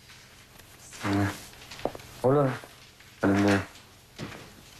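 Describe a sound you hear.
A man speaks calmly and formally nearby.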